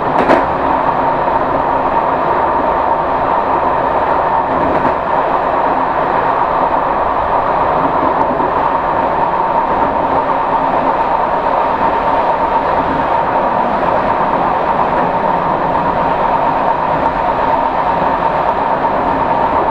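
A train's wheels hum with a steady whine.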